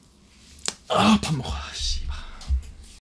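A young man yells in anguish close to a microphone.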